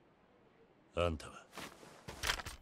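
A man asks a short, tense question.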